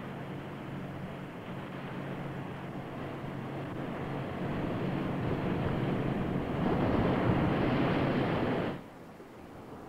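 Waves crash against rocks.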